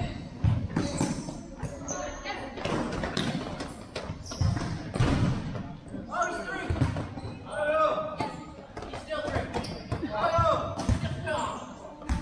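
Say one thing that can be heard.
A ball is kicked and thuds in a large echoing hall.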